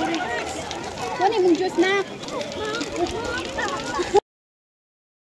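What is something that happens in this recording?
Plastic snack wrappers rustle and crinkle.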